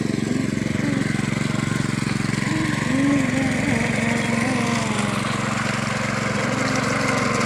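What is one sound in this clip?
A single-cylinder diesel walking tractor chugs under load through wet mud.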